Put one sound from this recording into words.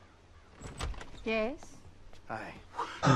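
An elderly woman asks a short question.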